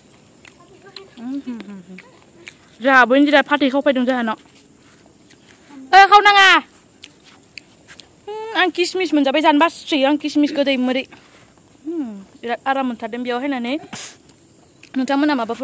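A young woman talks with animation close to a phone microphone, in short bursts.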